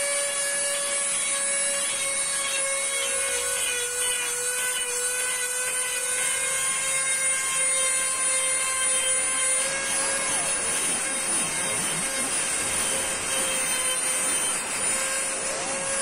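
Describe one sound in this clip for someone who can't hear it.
A small rotary tool whines steadily at high speed.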